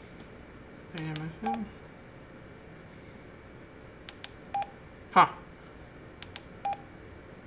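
A radio handset gives short electronic beeps.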